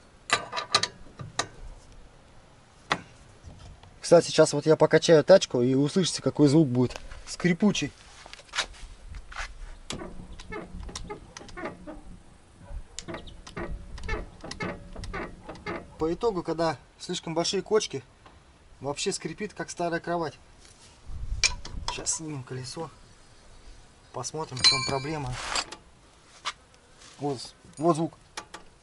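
A man speaks calmly close by, explaining.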